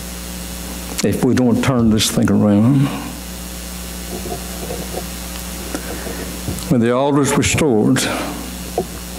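A man preaches through a microphone in a large echoing hall, speaking with emphasis and pausing between phrases.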